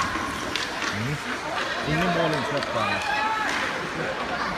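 Children shout across the echoing rink.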